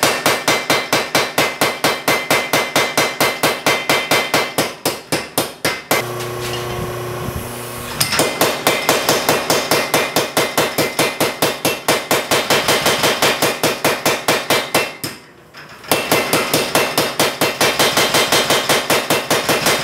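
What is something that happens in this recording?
A power hammer pounds metal in a rapid, steady rhythm of sharp blows.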